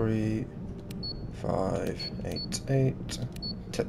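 Keypad buttons beep as a code is entered.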